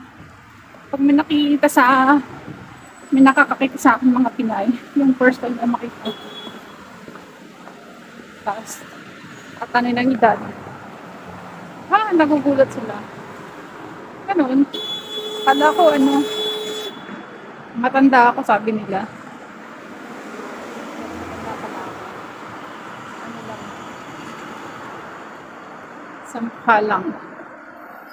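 A young woman talks calmly and close by, in short bursts.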